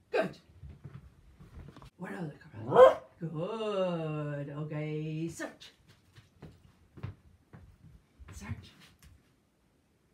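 A dog's claws tap on a wooden floor.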